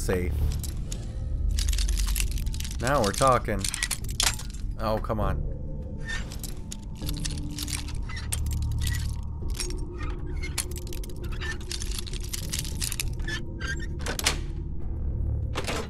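A lockpick scrapes and clicks inside a metal lock.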